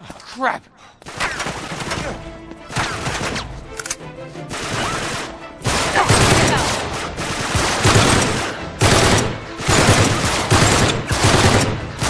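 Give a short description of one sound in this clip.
Rapid gunfire crackles and bursts.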